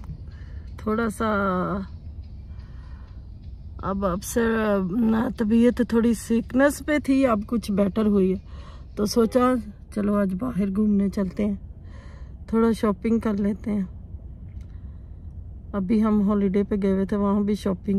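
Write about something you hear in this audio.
A woman speaks softly and sadly, close by.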